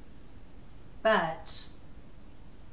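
A woman speaks a short word close to a microphone.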